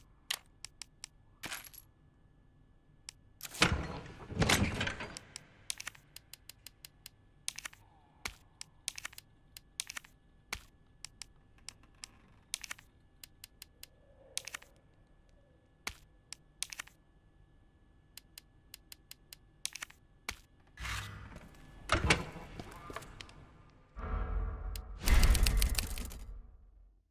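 Short menu clicks and beeps sound again and again.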